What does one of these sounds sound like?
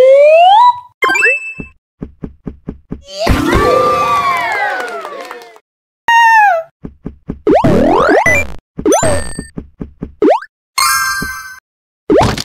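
Short electronic pings chime.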